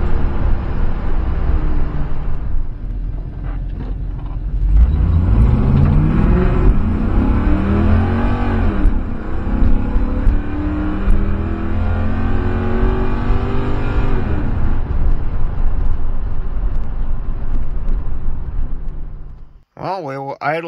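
A car engine roars and revs up and down while driving.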